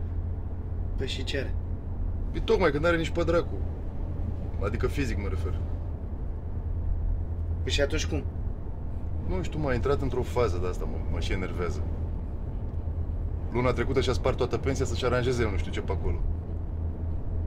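A man talks calmly inside a car.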